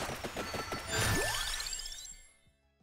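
A rising chime plays as a level-up menu opens.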